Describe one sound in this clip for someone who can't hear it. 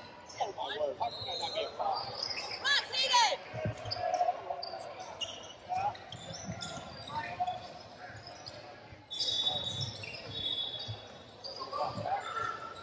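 A basketball thumps on the wooden floor.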